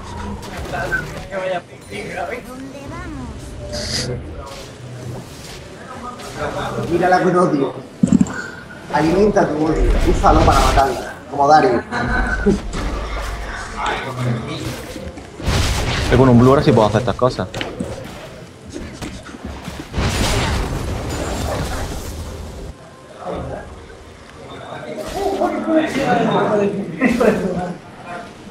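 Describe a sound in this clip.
Blows and magic effects crackle and thud in a fight.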